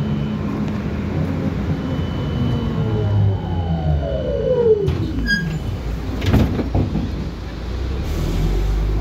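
A vehicle's engine rumbles steadily from inside while riding along a road.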